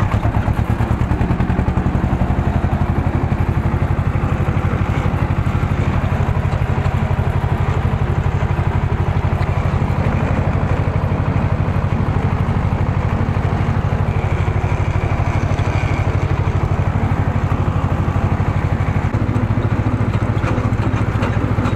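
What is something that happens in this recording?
An old tractor's diesel engine chugs loudly and steadily close by.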